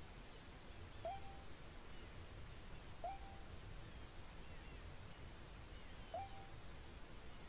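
Short, soft electronic blips sound every few seconds.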